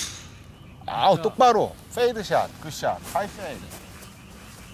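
A man talks with animation nearby, outdoors.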